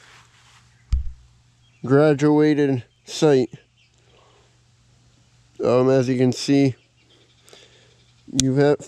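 A rifle's metal parts click sharply.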